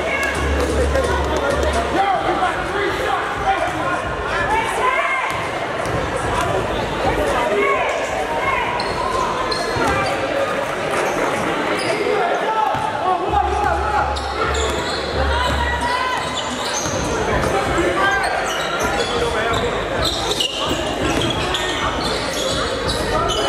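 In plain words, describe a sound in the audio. A crowd of spectators chatters throughout in a large echoing gym.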